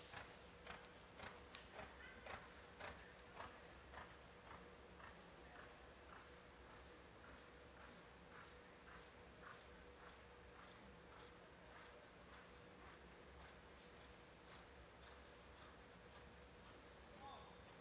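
A horse's hooves thud rhythmically on soft dirt in a large echoing hall.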